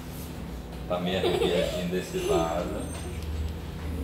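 A young child laughs nearby.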